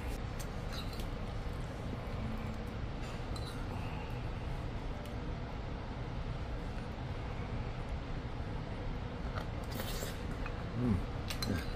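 A spoon scrapes and clinks in a bowl of rice.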